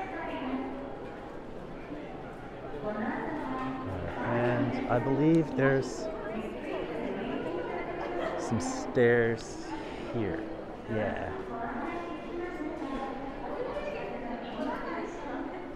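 A crowd of men and women chatter nearby in an echoing indoor hall.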